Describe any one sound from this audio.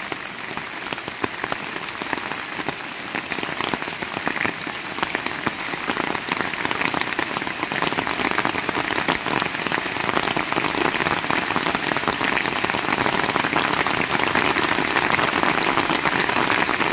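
Raindrops patter and splash on puddles.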